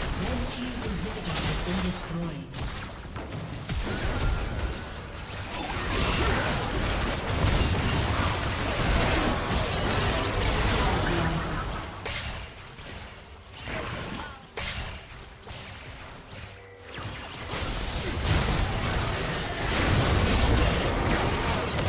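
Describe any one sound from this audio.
Game spell effects and blasts clash loudly during a battle.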